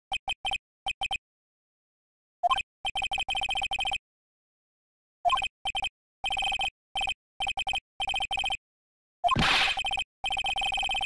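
Short electronic blips tick rapidly in bursts.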